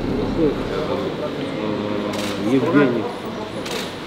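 Passports rustle as they are picked up from a table.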